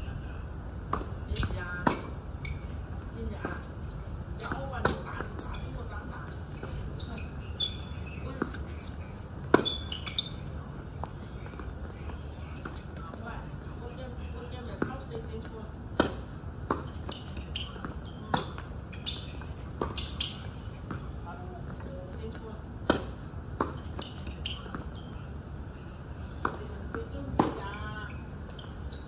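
Tennis balls pop off racquets in a steady rally outdoors.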